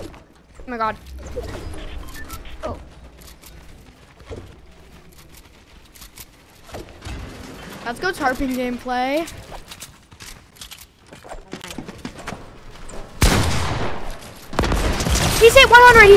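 A young boy shouts excitedly into a microphone.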